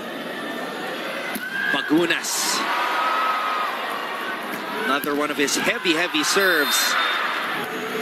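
A volleyball is struck with sharp smacks.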